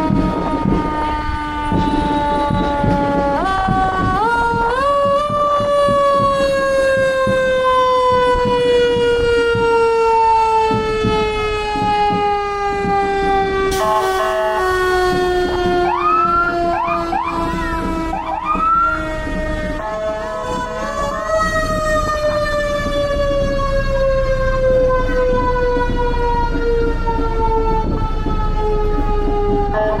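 Heavy truck engines rumble past.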